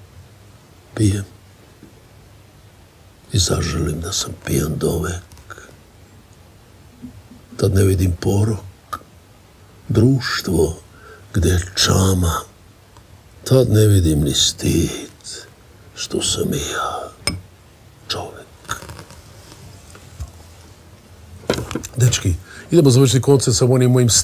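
An elderly man speaks slowly and deliberately into a close microphone.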